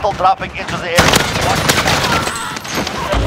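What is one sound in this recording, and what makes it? A gunshot cracks sharply close by.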